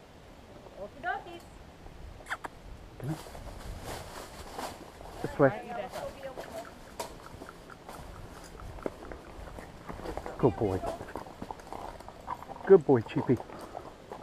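Horse hooves clop on a dirt trail.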